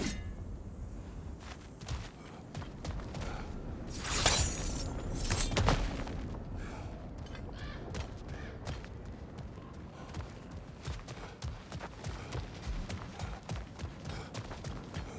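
Heavy footsteps crunch on gravel at a steady pace.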